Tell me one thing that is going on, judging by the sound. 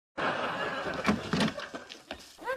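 A man knocks on a door.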